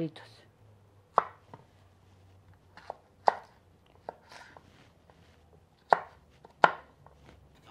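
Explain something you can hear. A knife taps on a cutting board as vegetables are chopped.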